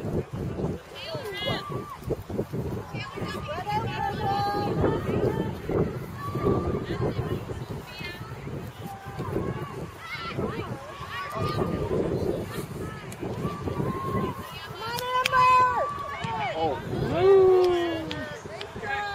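Spectators, both adults and children, shout and cheer outdoors.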